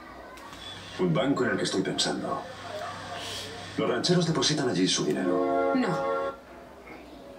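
A man speaks through a television speaker.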